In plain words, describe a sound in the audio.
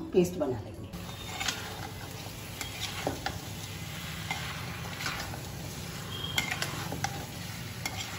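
A metal spatula scrapes and stirs food in a metal pan.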